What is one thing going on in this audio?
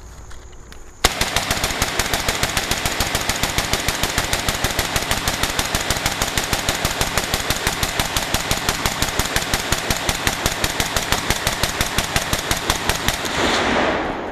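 A rifle fires in a long, rapid burst of shots.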